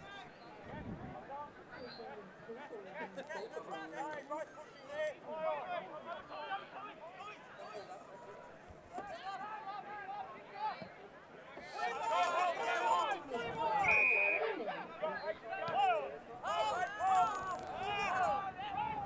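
A crowd of spectators shouts and cheers outdoors, growing louder partway through.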